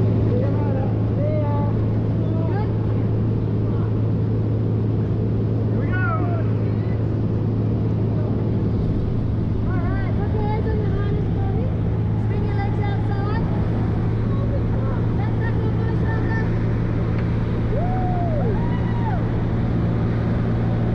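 An aircraft engine drones loudly and steadily.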